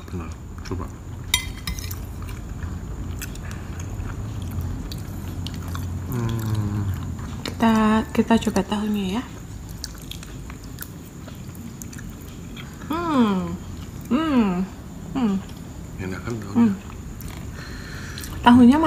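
A metal spoon clinks and scrapes on a ceramic plate.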